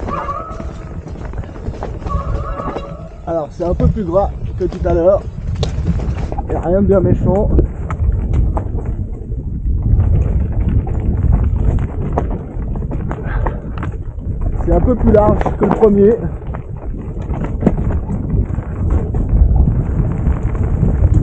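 Bike tyres roll and crunch over a dirt trail.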